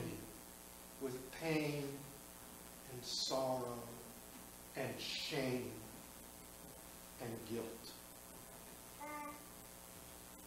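A man speaks calmly through a microphone, with pauses, in a room with some echo.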